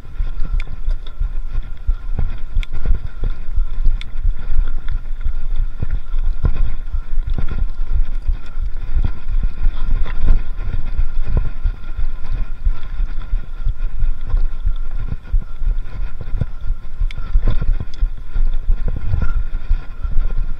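A bicycle chain and frame rattle and clatter over bumps.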